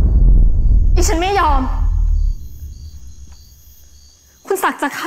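A woman speaks in a strained, shaky voice nearby.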